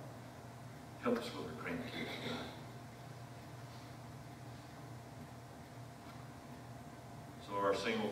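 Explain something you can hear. A man speaks through a microphone in a large echoing hall, with pauses.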